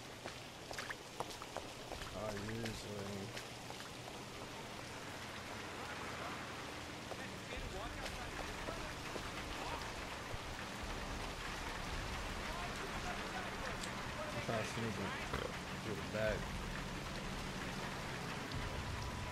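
Rain falls on a street.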